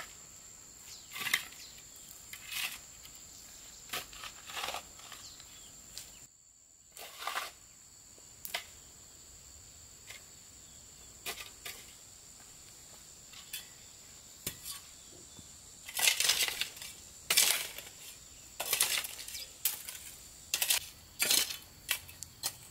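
A hoe chops into dry soil with repeated scraping thuds.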